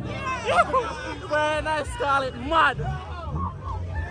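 A young man laughs with excitement close by.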